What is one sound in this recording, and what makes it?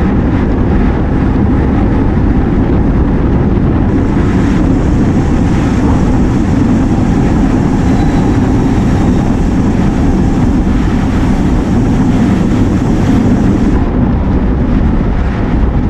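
Wind buffets and roars steadily outdoors.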